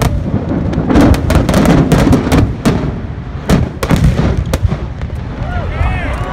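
Fireworks crackle and sizzle.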